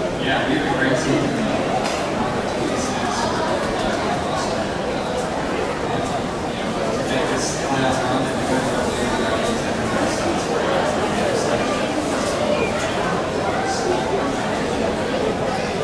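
A man speaks into a microphone, heard over a stadium loudspeaker.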